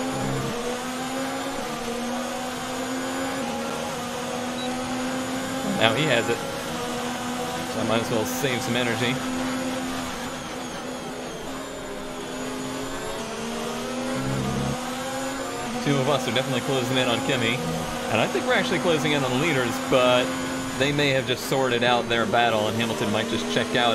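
A racing car engine whines at high revs, rising and falling in pitch as the gears shift.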